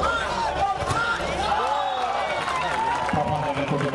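A volleyball is spiked with a sharp smack.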